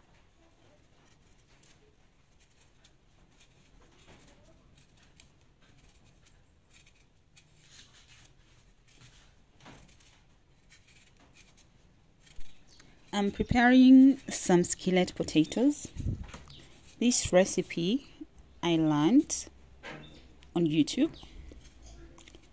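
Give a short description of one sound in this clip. A knife scrapes softly as it peels a potato.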